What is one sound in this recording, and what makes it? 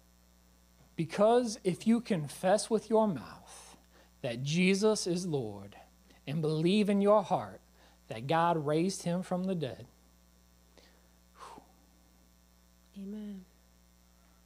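A man speaks slowly and earnestly into a microphone, with pauses.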